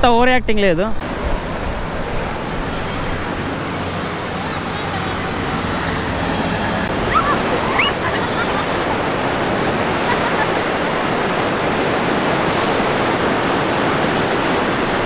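Sea waves wash onto a sandy shore.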